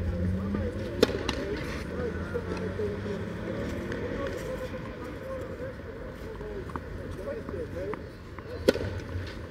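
A tennis ball is struck sharply with a racket.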